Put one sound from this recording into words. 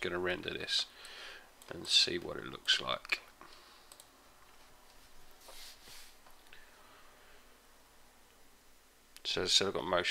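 A man talks calmly into a close microphone, pausing between phrases.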